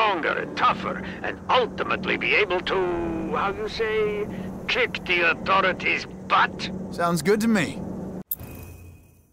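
A rocket engine rumbles steadily.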